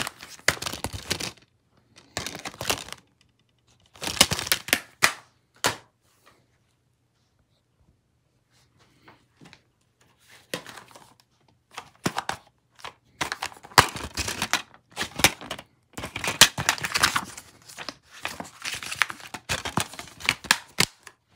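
Plastic disc cases clatter and click as they are handled.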